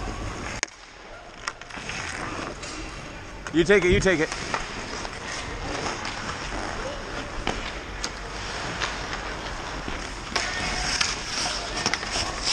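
A hockey stick clacks against a puck.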